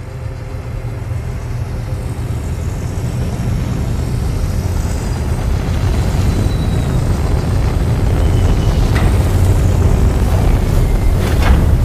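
A large craft's engines roar with a deep rumble that grows louder as it descends.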